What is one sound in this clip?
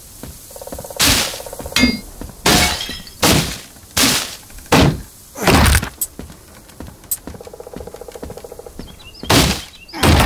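Heavy blows land in quick bursts of whooshing thuds.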